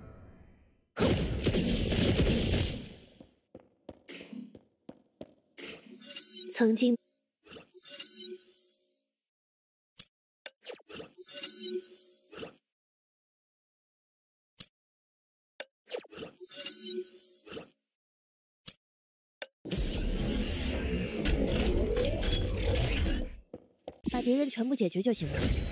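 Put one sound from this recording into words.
Game combat effects burst and whoosh loudly.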